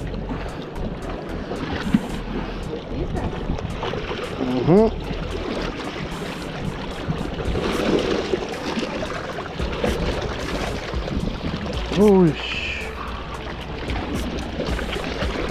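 Small waves lap and splash against rocks.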